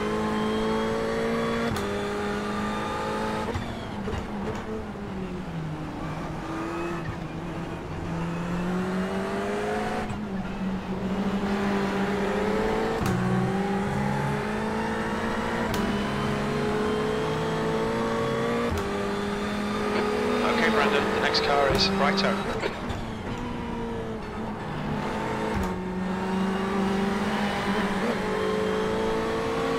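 A racing car engine roars and revs up and down as it changes gear.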